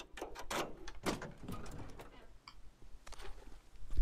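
A car trunk thumps open.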